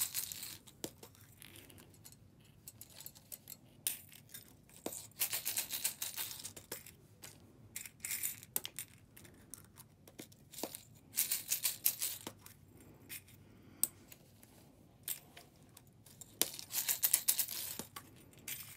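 A plastic egg clicks as it is snapped open and shut.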